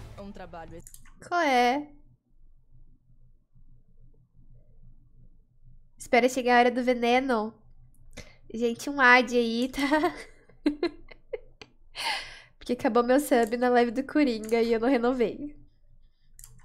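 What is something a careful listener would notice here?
A young woman talks and exclaims with animation, close to a microphone.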